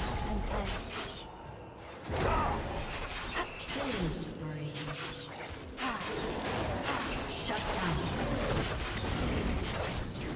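Video game combat sound effects clash and burst.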